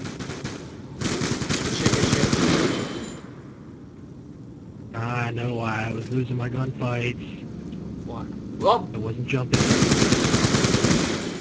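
Automatic rifle fire rattles in a video game.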